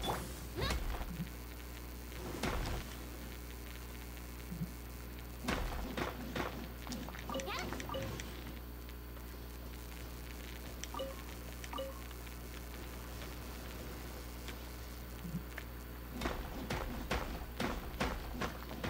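A sword slashes and strikes crystals with sharp, ringing hits.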